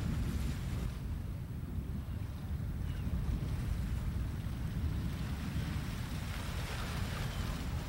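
Small waves lap gently on open water.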